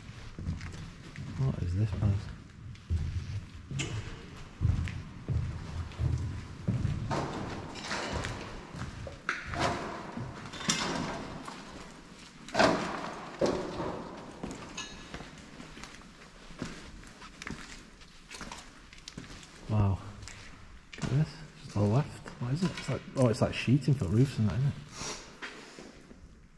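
A young man speaks calmly nearby, in a large echoing hall.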